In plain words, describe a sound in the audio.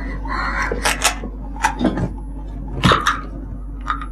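A man sits down heavily on a creaking chair.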